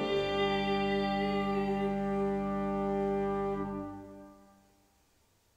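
An organ plays a sustained chord that fades away.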